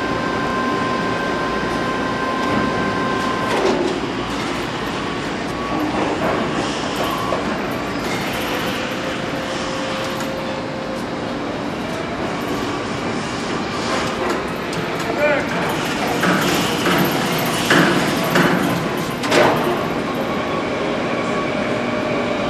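Factory machinery hums steadily in a large echoing hall.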